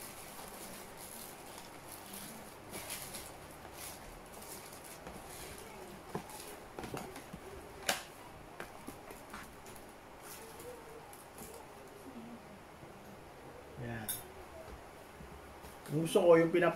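Paper and a cardboard food box rustle as they are handled.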